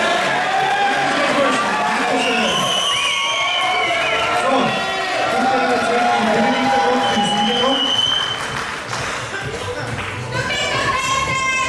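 Music with singing plays loudly through loudspeakers in a large hall.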